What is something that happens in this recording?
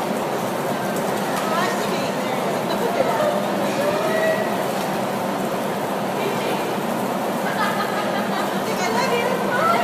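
A young woman laughs and talks softly nearby.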